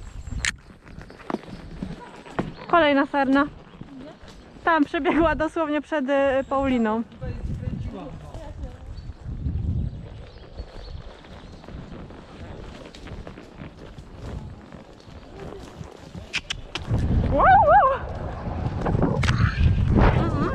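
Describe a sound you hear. Horses' hooves thud steadily on a soft forest path.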